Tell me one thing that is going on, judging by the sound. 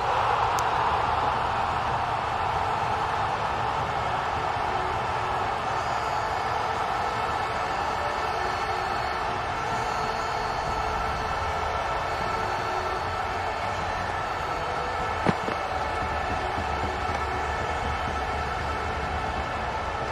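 A stadium crowd murmurs and cheers steadily throughout.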